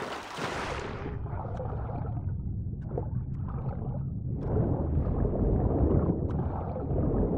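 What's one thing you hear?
Water rumbles, low and muffled, as a swimmer dives under the surface.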